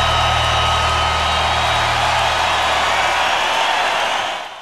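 Music plays loudly from the stage.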